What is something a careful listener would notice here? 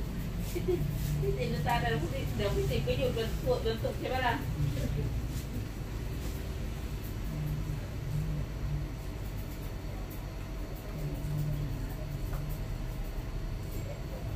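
A razor scrapes lightly over skin.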